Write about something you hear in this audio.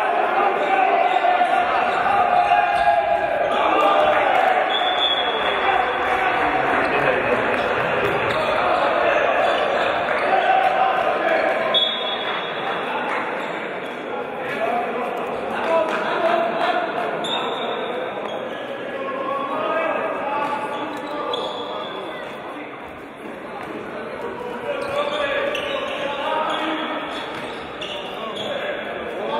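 A crowd of spectators murmurs and shouts in a large echoing hall.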